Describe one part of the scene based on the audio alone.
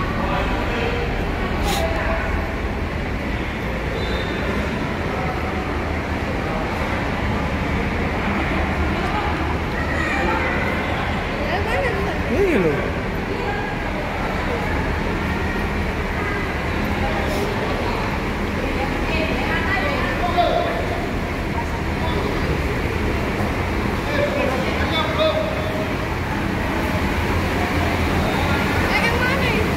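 Footsteps walk across a hard floor in a large echoing hall.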